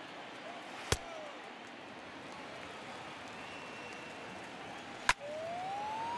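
A pitch pops into a catcher's mitt.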